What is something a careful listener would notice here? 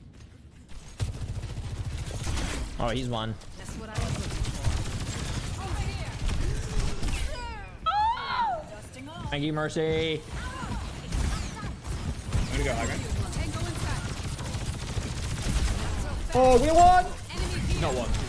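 Game gunfire rattles in rapid bursts.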